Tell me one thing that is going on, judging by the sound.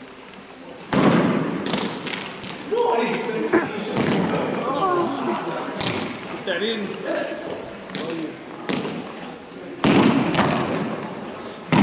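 Hockey sticks strike pucks with sharp cracks that echo in a large open hall.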